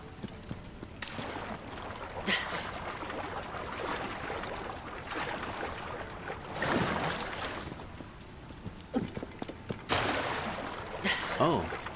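Water splashes as a swimmer paddles and dashes through it.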